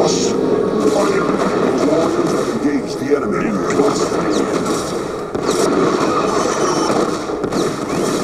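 Laser fire and explosions crackle in a science-fiction strategy game battle.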